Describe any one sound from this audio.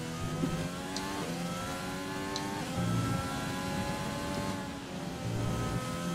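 A racing car engine whines at high revs, dropping in pitch with each gear shift.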